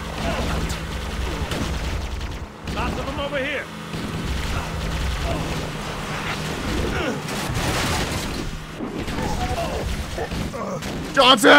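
Kart engines hum and buzz steadily as they race.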